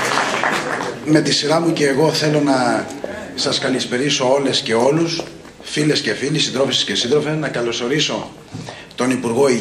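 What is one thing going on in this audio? A middle-aged man speaks forcefully into a microphone over loudspeakers.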